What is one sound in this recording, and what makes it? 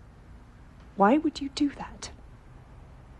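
A woman speaks in a low, tense voice close by.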